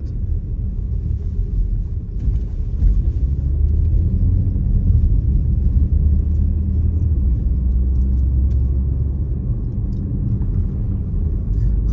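Tyres rumble over a rough, bumpy road.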